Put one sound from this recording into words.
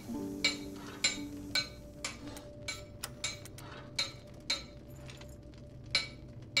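A hammer strikes an anvil in a steady rhythm, with ringing metallic clangs.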